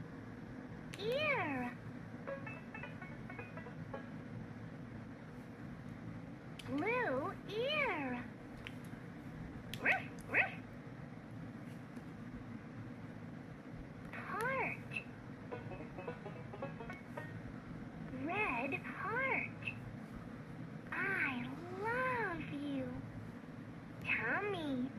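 A toy's electronic voice sings and talks in a high, cheerful tone through a small tinny speaker, in short bursts.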